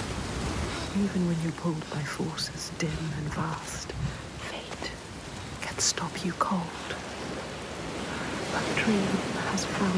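A young woman speaks in a low, tense voice close by.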